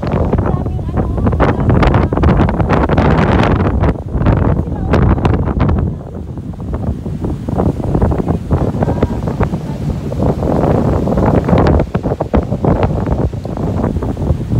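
Strong wind buffets the microphone with loud rumbling gusts.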